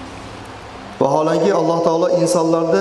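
A man chants in a long, melodic voice through a microphone.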